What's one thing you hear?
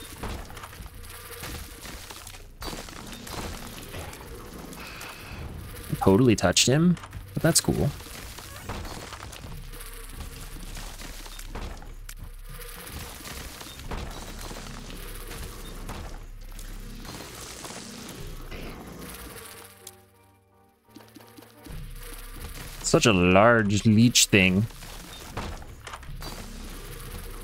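Game sound effects pop and burst rapidly.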